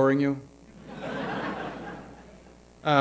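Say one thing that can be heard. An audience laughs softly in a large hall.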